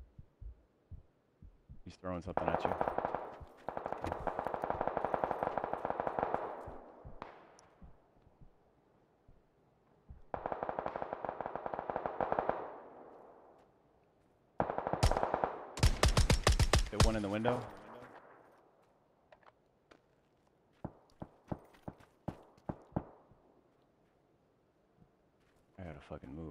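Footsteps shuffle softly over grass and gravel.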